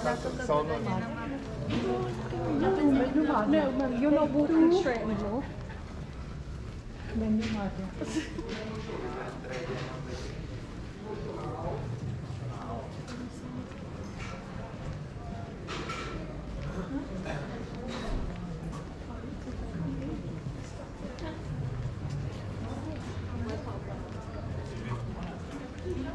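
Footsteps tap on a stone pavement.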